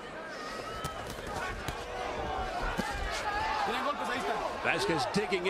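A large crowd murmurs and cheers in a big hall.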